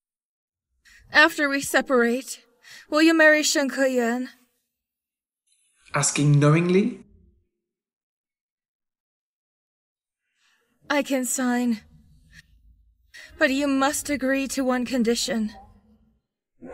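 A young woman speaks softly and hesitantly close by.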